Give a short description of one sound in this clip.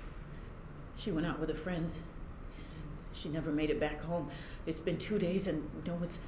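A middle-aged woman speaks firmly, close by.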